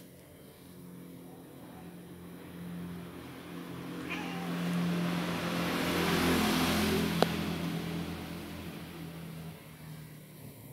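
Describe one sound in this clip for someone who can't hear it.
A cat purrs softly and steadily.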